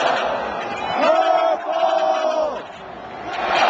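A marching band's brass plays sustained notes.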